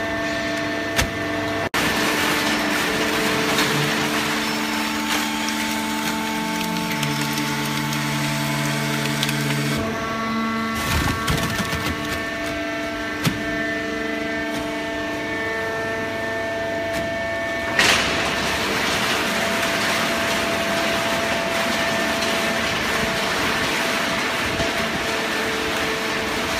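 A hydraulic baling press hums and whines as its pump runs.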